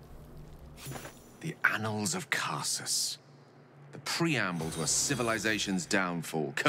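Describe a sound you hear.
A middle-aged man talks into a microphone.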